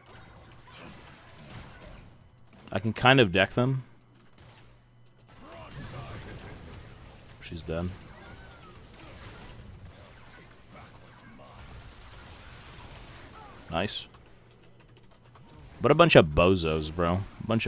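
Magic blasts whoosh and crackle during a fantasy battle.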